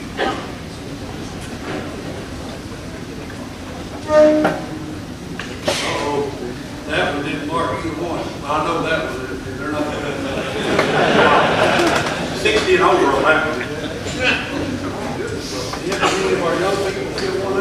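A crowd of people chatters at tables.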